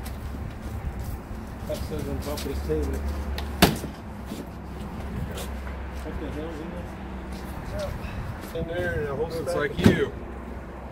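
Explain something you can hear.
Objects knock and rattle inside a storage unit.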